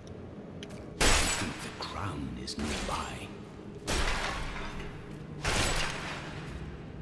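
Blows strike and magic bursts with sharp whooshing crashes.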